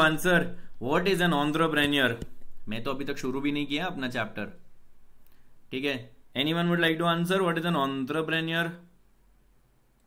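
A young man talks calmly and clearly into a nearby microphone.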